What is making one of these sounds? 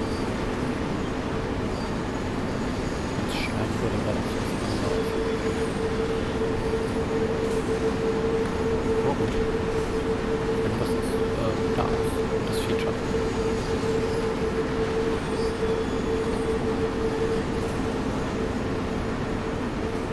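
Train wheels rumble and click over the rails.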